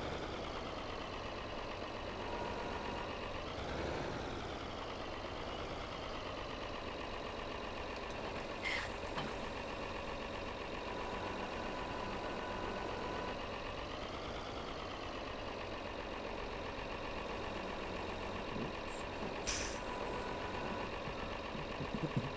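A tractor engine rumbles steadily and briefly revs up now and then.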